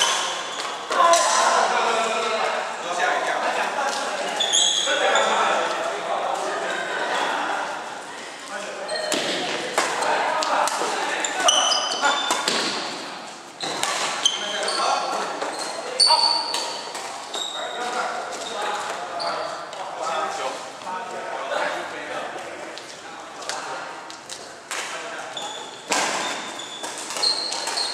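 Shoes squeak on a wooden court floor.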